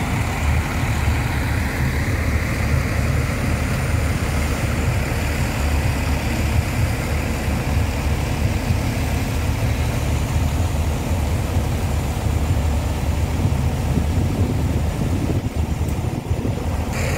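Wind blows steadily and rumbles outdoors.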